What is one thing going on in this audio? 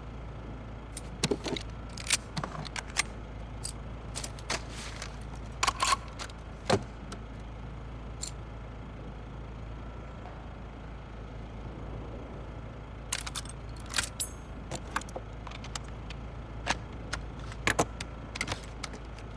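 Metal gun parts click and clack as they are handled.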